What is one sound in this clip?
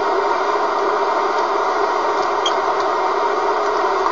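A rotary switch clicks.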